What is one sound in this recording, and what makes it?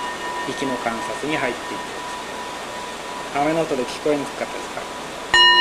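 A man speaks calmly and slowly.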